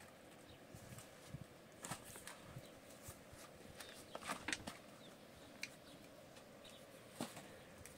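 A woman pats and kneads dough by hand.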